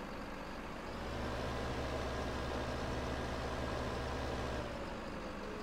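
A hydraulic crane arm hums as it swings and lifts.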